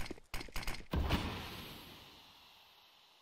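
A smoke grenade bursts and hisses as it spreads.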